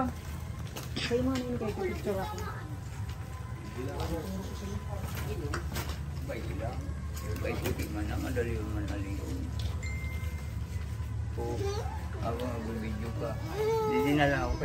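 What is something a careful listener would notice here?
Women talk casually close by, with several voices overlapping.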